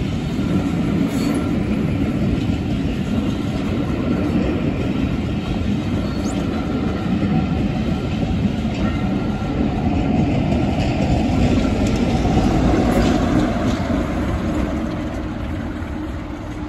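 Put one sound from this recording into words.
A passenger train rumbles past on the rails.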